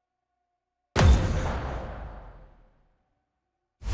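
A game sound effect whooshes loudly and fades.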